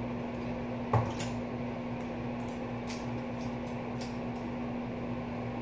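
Scissors snip through hair with short clicks.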